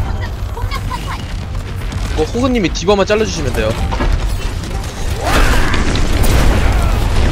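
Energy weapons fire and blast in rapid bursts.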